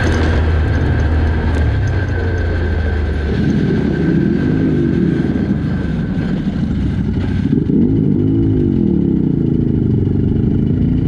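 A quad bike engine rumbles close by and revs up and down.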